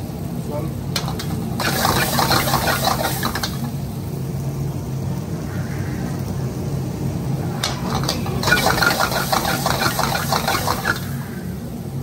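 A metal ladle scrapes against a wok.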